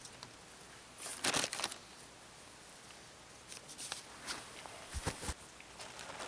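Twigs and dry needles crackle under hands on the ground.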